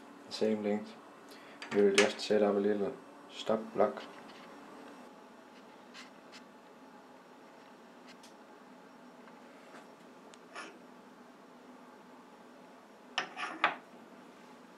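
Metal parts clink and knock as they are set in a vise.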